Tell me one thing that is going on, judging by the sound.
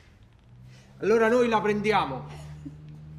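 A woman laughs softly close by.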